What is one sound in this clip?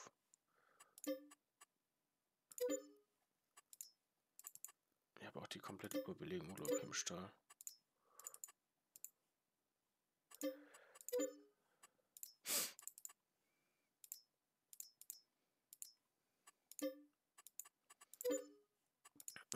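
Short soft menu chimes sound as options are selected.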